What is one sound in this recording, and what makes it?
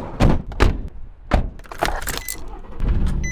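A van door clunks and thumps as someone climbs in.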